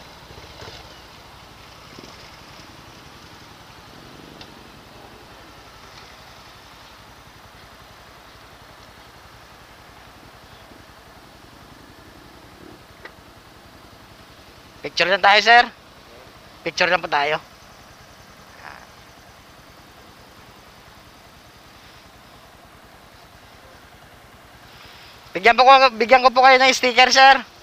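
A motorcycle engine idles quietly.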